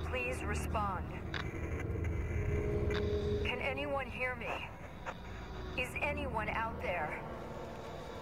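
A man calls out over a crackling radio, asking for a reply.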